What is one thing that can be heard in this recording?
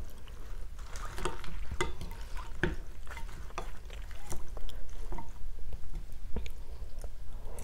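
A woman chews and slurps noodles close to a microphone.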